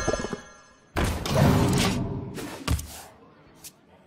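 A fiery blast and impact sound out as one game creature attacks another.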